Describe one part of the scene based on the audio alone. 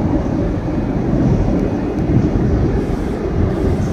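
A passing train on the next track roars by.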